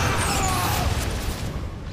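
Laser guns fire and crackle in a battle.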